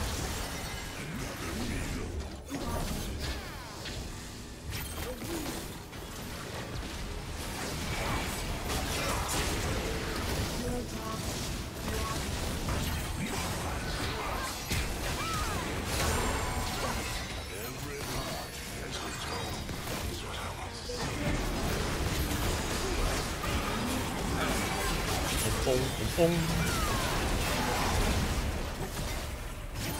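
Game spell effects whoosh and burst during a busy fight.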